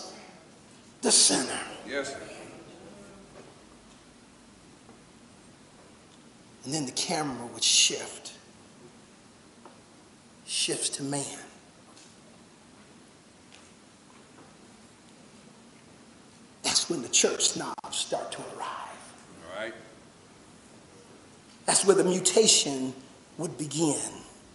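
A man preaches with animation through a microphone, in short bursts with long pauses, in an echoing room.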